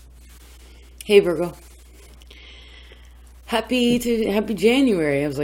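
A woman speaks expressively close by.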